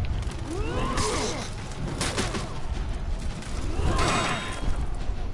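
Swords clash and ring against a shield.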